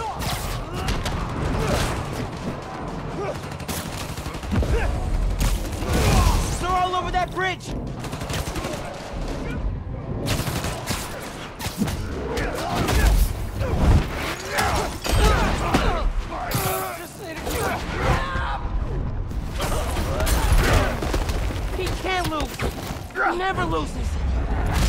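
Punches thud and smack in a rough brawl.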